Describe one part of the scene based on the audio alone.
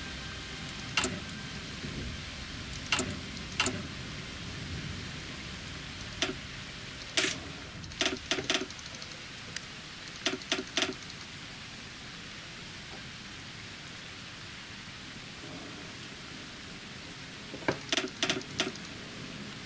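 Short interface clicks sound as menus open and buttons are pressed.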